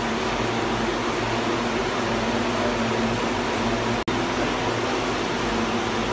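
A large machine hums steadily nearby.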